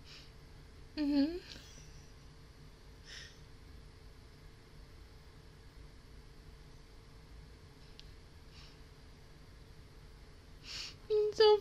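A young woman speaks briefly and softly into a close microphone.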